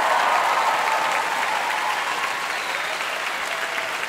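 A large choir holds a final sung chord in a big echoing hall.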